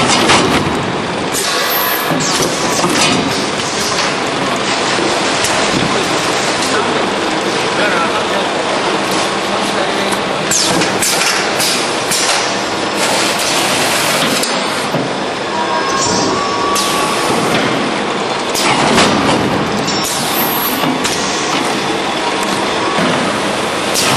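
Packing-line machinery with roller conveyors clatters and whirs.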